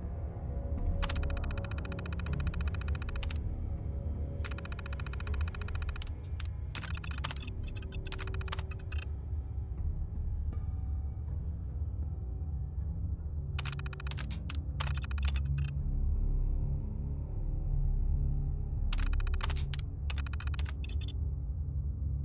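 A computer terminal chirps and clicks rapidly as text prints out.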